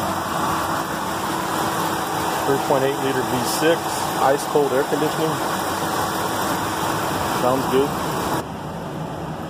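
A 3.8-litre V6 engine idles.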